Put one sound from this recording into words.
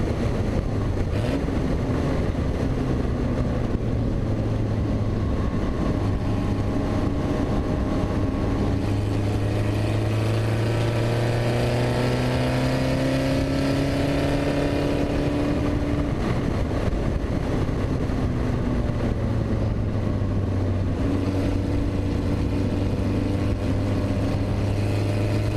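A race car engine roars steadily, rising and falling in pitch as it shifts gears.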